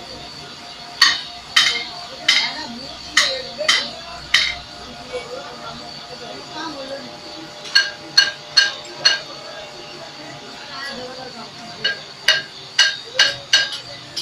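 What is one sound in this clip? Metal parts clank sharply in quick runs.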